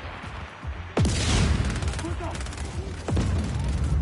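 Heavy booms and blasts ring out.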